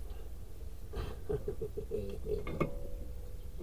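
Metal brake parts clink and scrape together close by.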